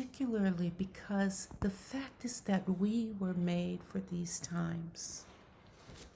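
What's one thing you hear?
A middle-aged woman speaks warmly over an online call.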